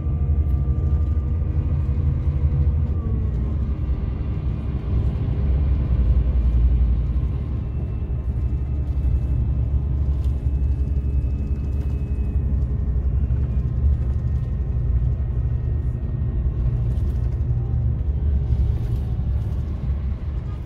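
A bus engine drones steadily from inside the cabin as the bus drives along.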